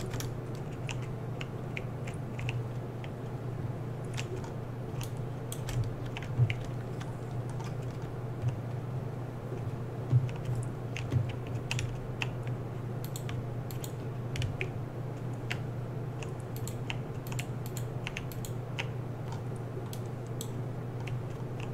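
A pickaxe clicks sharply as it breaks blocks in a game.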